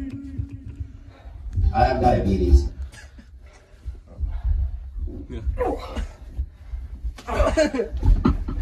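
Feet thump and stamp on a padded floor.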